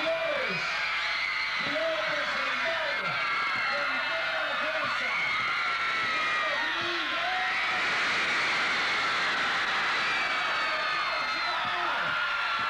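Many young women shriek and yell in the crowd.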